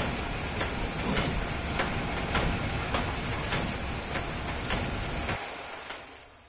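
Footsteps tread steadily across a hard floor.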